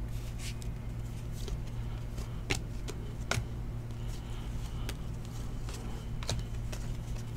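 Trading cards slide and flick against each other in hands.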